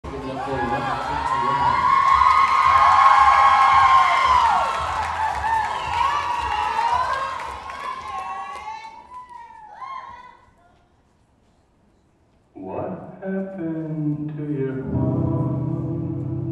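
Music plays loudly over loudspeakers in a large hall.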